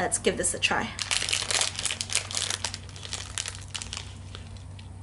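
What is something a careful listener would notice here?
Plastic wrapping crinkles as it is torn open.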